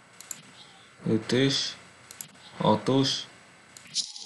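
A woman talks briefly and calmly into a microphone.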